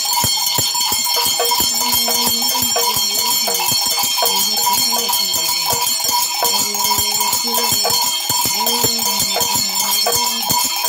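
A man shakes a rattle in a quick, steady rhythm.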